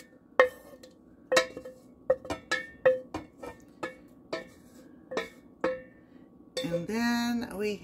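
A wooden spoon knocks and scrapes against a metal pot.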